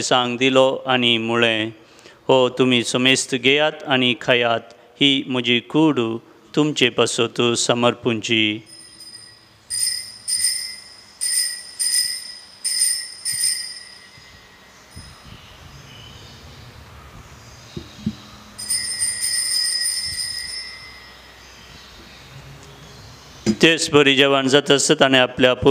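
A man chants into a microphone in a steady, singing voice.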